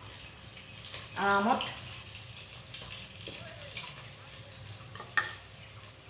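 Food sizzles softly in hot oil in a pan.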